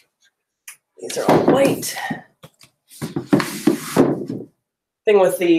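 Books thump and slide onto a shelf.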